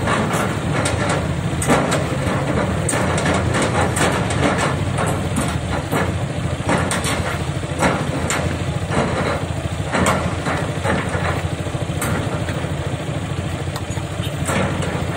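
Metal clanks and knocks from an excavator at work.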